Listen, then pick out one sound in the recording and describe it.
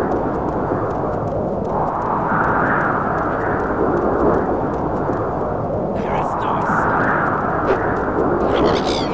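Strong wind howls steadily outdoors, swelling and easing in gusts.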